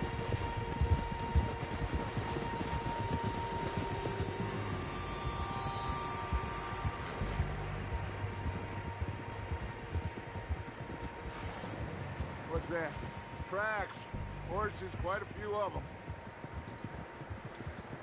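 Horses' hooves thud softly through deep snow.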